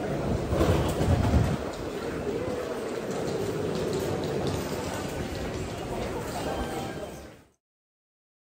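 Many people murmur in a large echoing hall.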